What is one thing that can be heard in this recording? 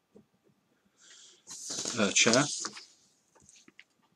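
A sheet of paper rustles as it is moved.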